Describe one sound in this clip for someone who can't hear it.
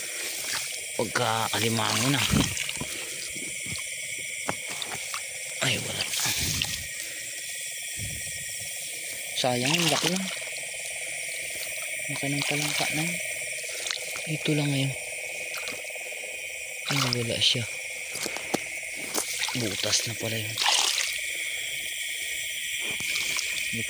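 Tall grass rustles and swishes against legs.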